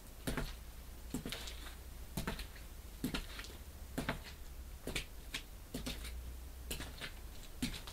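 A man's footsteps thud on a floor at an even pace.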